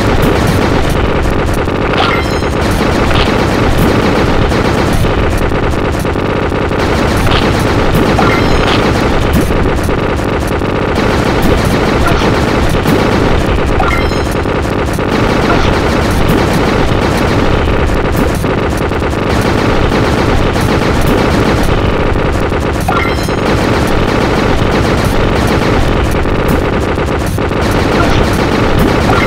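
Cartoon battle sounds of hits and blasts clatter again and again.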